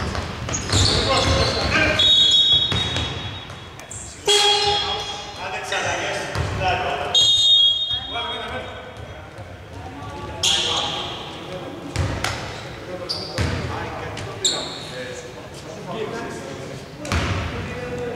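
A basketball thuds as it bounces on the court.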